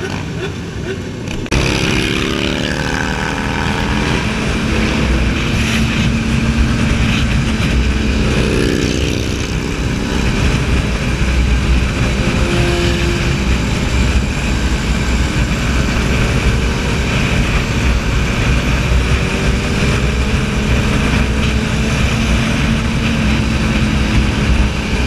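Wind rushes past steadily at speed.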